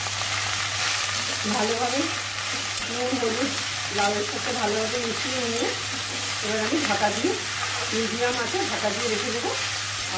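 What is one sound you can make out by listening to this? A spatula scrapes and stirs vegetables in a metal pan.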